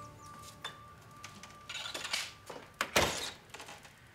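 A wooden door swings and knocks.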